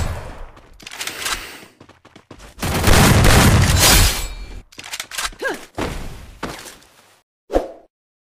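A shotgun fires in loud bursts.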